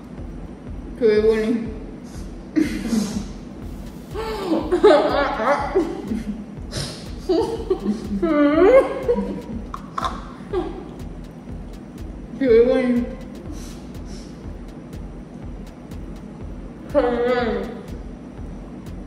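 Two young women talk and laugh close by.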